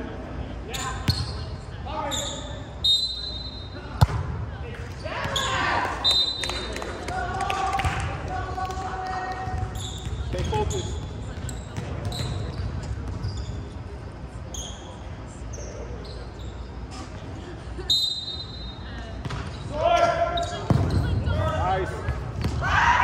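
Young men call out and shout during play in a large echoing hall.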